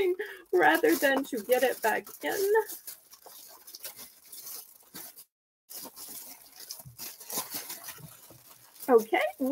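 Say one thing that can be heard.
Crinkly plastic rustles and crackles close by as hands handle it.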